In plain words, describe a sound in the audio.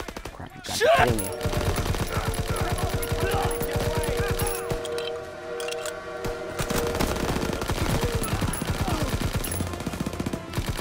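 A suppressed submachine gun fires rapid bursts.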